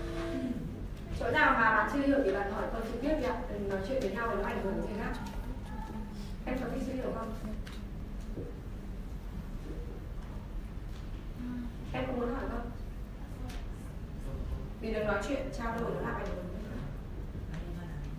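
A woman speaks through a microphone into a room, calmly and with pauses.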